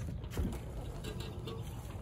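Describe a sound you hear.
A rider kicks the motorcycle's starter pedal.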